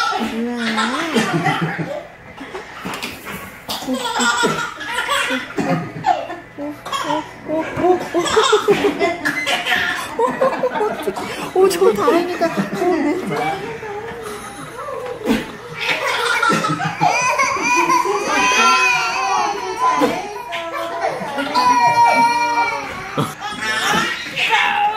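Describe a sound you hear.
Babies laugh loudly and giggle.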